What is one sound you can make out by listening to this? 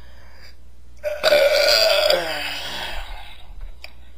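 A man lets out a long, loud belch.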